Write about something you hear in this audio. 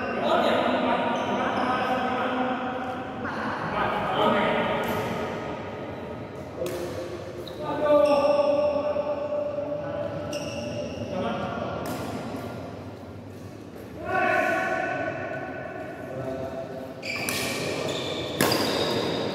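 Shuttlecocks are struck sharply with rackets in an echoing indoor hall.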